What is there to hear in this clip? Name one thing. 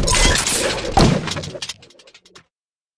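A loud explosion bursts and rumbles.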